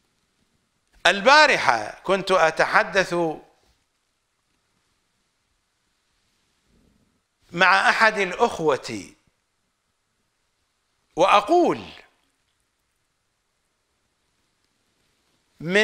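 A middle-aged man speaks with animation into a microphone, in bursts with pauses.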